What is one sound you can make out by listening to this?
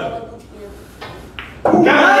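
A cue strikes a pool ball.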